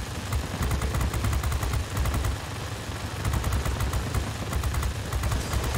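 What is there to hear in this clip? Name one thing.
Aircraft machine guns fire in rapid bursts.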